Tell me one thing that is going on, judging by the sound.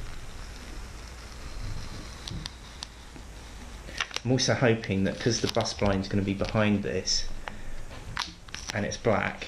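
Paper crinkles and rustles as a backing sheet is peeled away.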